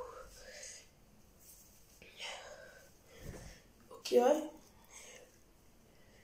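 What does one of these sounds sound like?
Cloth rustles and flaps as it is shaken close by.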